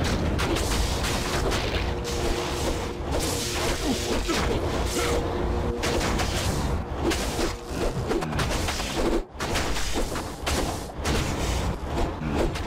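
Spells crackle and burst in a game battle.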